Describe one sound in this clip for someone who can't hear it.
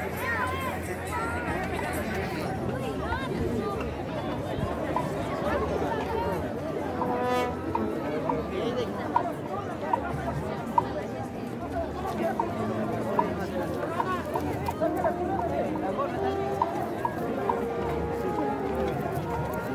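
A crowd chatters and calls out nearby outdoors.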